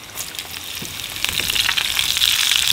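Sliced onions drop into a hot frying pan and sizzle.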